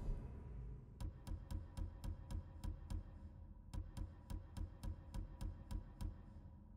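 Soft menu clicks tick quickly one after another.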